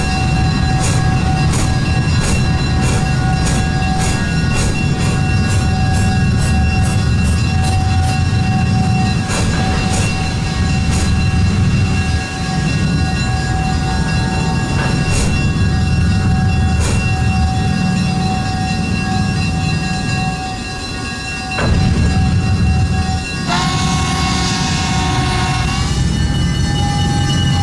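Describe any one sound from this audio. Train cars rumble steadily along the track.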